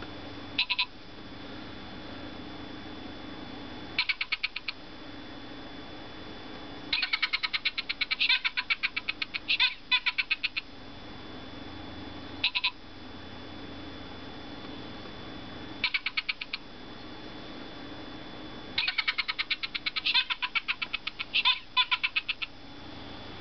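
A talking plush toy chatters and babbles in a squeaky, high-pitched voice through a small speaker, in short bursts.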